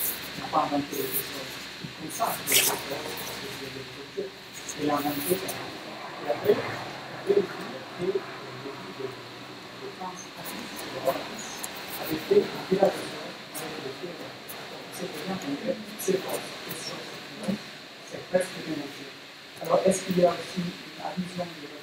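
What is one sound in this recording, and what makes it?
A young man speaks calmly into a microphone in a room with a slight echo.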